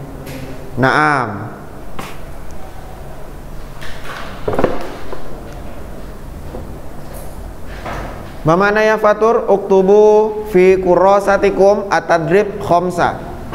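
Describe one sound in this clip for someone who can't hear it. A man speaks calmly into a clip-on microphone, close by.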